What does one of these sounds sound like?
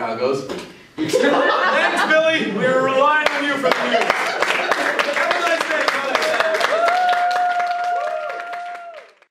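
Two men laugh loudly together.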